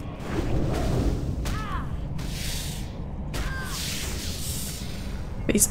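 Blades swing and strike in a fight.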